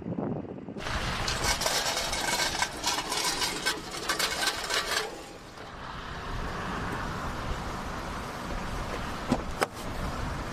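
Wind gusts loudly outdoors.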